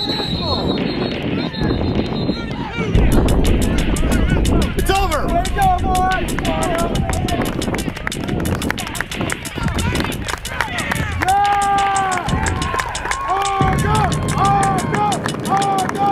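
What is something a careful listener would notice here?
Young players shout and call to each other outdoors, some distance away.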